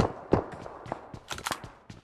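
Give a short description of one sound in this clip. Footsteps thud on wooden stairs in a video game.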